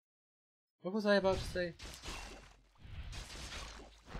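Weapons clash and strike in a fight.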